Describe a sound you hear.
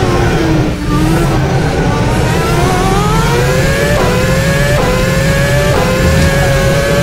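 A racing car engine whines loudly, slowing, then revving up and shifting gears several times.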